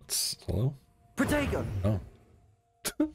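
A magic shield bursts up with a shimmering whoosh.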